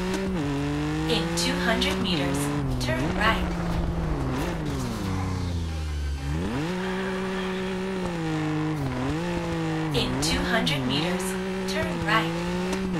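Tyres squeal on the road.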